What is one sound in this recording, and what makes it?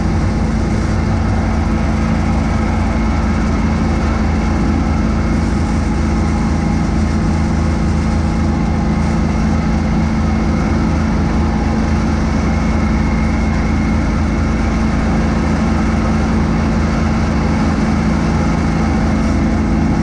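A tractor engine drones steadily up close.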